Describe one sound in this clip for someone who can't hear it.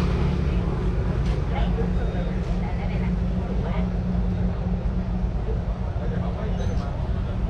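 An engine idles nearby with a steady low rumble.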